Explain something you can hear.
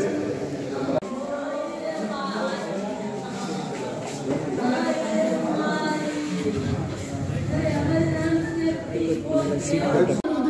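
Several men talk over one another in an echoing corridor.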